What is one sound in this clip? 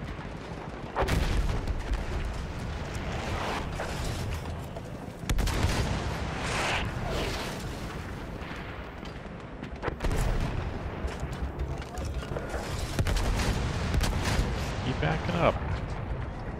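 Heavy explosions boom and rumble again and again.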